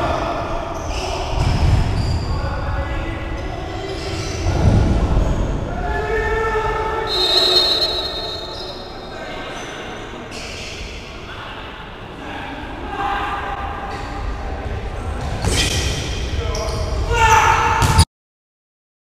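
Players shout in a large echoing hall.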